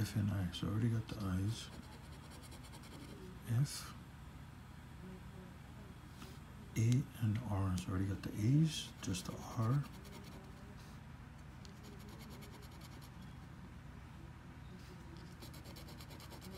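A card scrapes across a scratch-off ticket.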